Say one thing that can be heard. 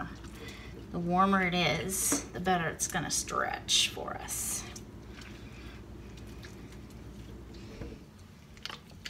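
Water drips and splashes into a metal sink.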